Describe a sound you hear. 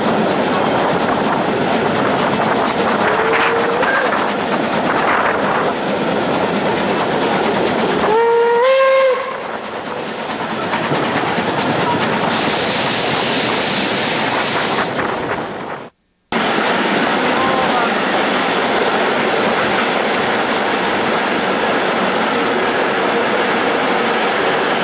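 A steam train rumbles and rattles along the track.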